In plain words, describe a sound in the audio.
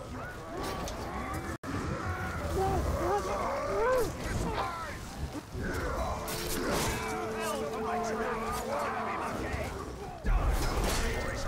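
Blades clash and thud in a close fight.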